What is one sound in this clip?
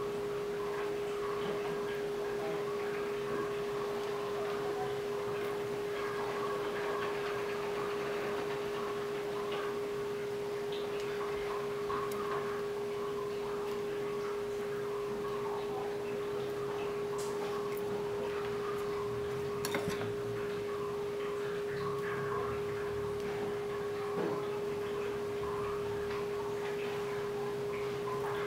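Oil sizzles and crackles steadily in a pot.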